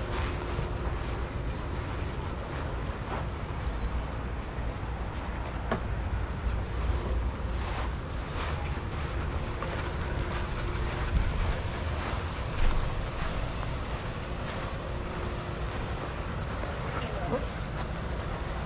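Several dogs pad and scuff across loose sand.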